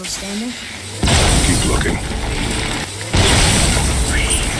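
A magical blast bursts with a loud rushing roar.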